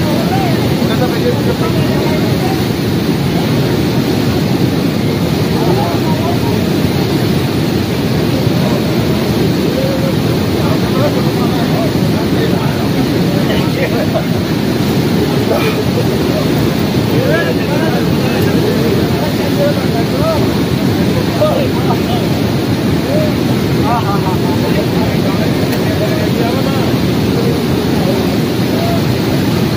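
Men talk nearby over the rushing water.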